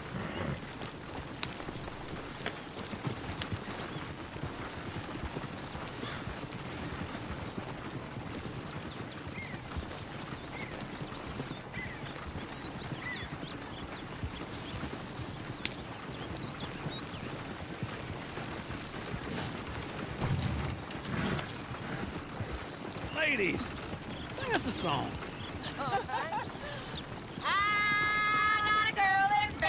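A wagon rolls and creaks along a dirt track.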